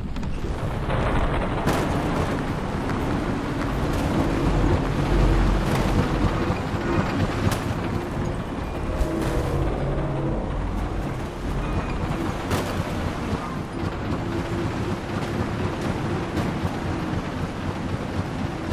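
A hoverbike engine hums steadily as it glides over sand.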